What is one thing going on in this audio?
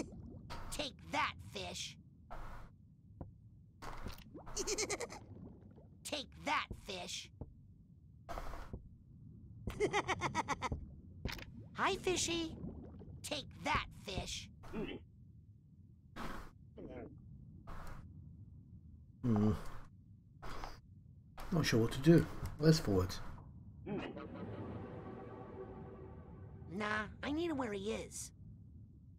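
A man talks with animation into a headset microphone, close by.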